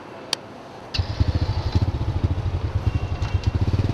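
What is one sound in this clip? A motorbike engine starts and idles with a rapid putter.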